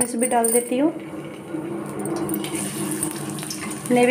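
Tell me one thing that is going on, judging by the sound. Onion slices sizzle and crackle as they fry in hot oil.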